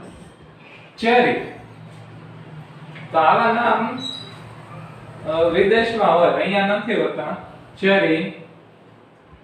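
A young man speaks clearly, close by.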